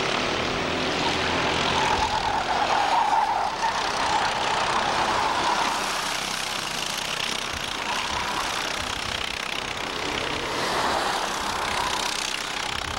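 Go-kart engines buzz and whine loudly as karts race past.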